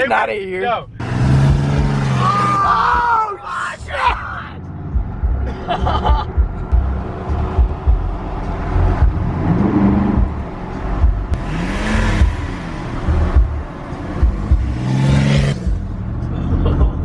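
A car engine hums and tyres rumble on the road.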